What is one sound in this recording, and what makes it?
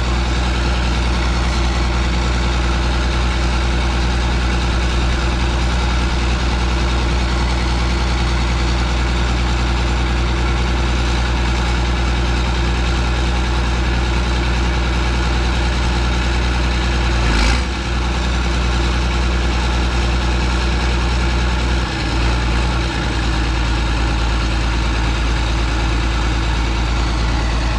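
A tractor's diesel engine idles close by with a steady, deep rumble.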